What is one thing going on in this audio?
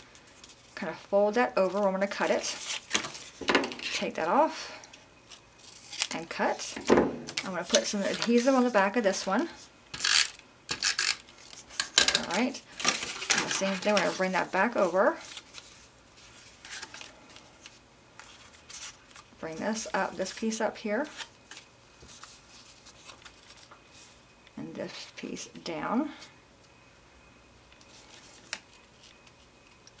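Paper and card rustle and crease as they are folded and handled.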